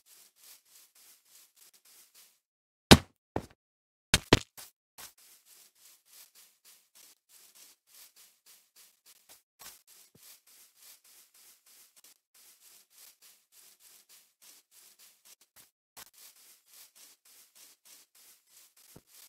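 Footsteps patter steadily on grass.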